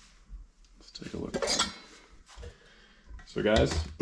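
A plastic engine cover knocks softly as it is lifted off.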